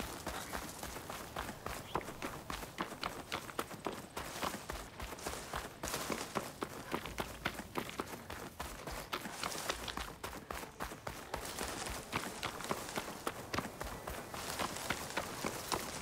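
Footsteps crunch quickly on gravel as someone runs.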